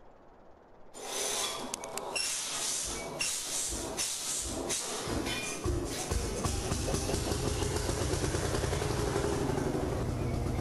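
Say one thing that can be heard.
A tractor engine rumbles steadily.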